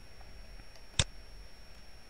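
Scissors snip through a ribbon.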